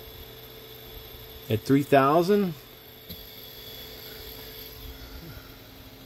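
A small electric motor hums steadily.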